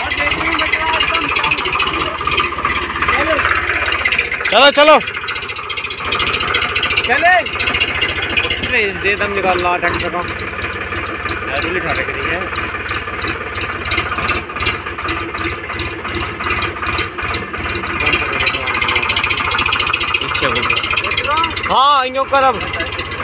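A tractor engine chugs steadily nearby.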